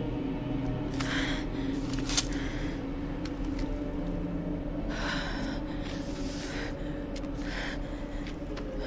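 Paper rustles and crinkles as a scroll is unrolled.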